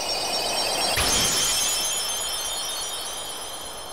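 A bright magical burst rings out and shimmers.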